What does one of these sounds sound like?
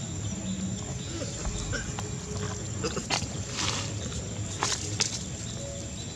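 A baby monkey scrapes at dry leaves and pebbles on the ground.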